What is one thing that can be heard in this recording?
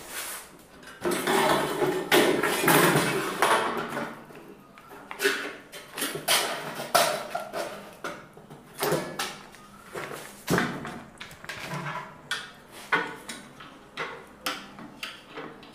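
An aluminium rail clatters and knocks as it is handled.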